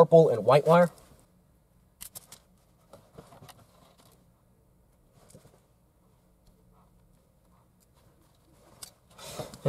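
Wires rustle and plastic connectors click softly.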